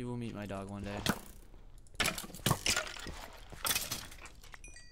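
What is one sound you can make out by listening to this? A sword strikes a skeleton with sharp hits.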